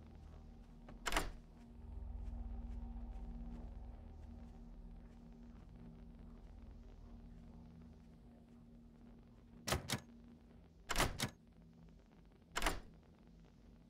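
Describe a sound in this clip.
Metal clicks sound sharply from a lock being picked.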